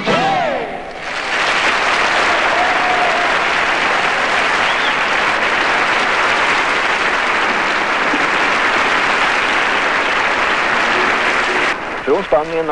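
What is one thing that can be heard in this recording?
A large crowd applauds and cheers in a big hall.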